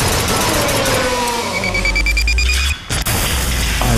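Electric crackling bursts out.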